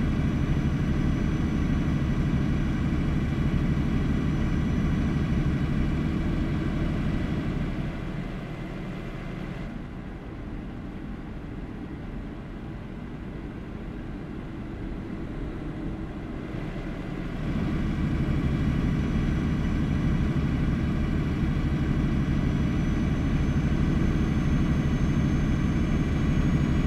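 Tyres roll on a road surface.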